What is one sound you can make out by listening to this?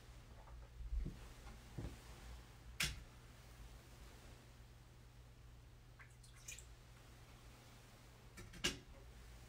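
Small objects knock and clink on a wooden table.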